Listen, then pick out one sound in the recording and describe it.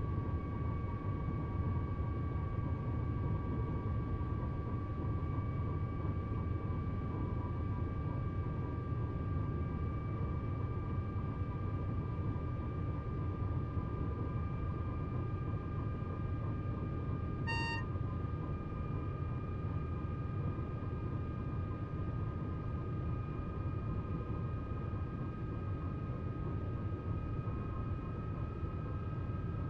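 An electric motor whines, slowly rising in pitch as the train speeds up.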